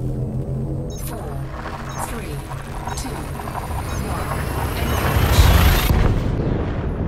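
A jump drive charges up with a rising whine and roaring rush, then cuts off suddenly.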